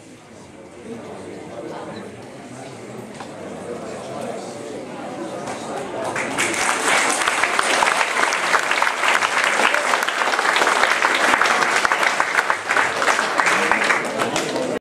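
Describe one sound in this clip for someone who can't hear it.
An audience claps, the applause swelling into loud, steady clapping.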